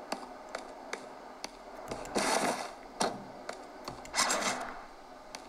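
Gunfire and game sound effects play from a handheld console's small speakers.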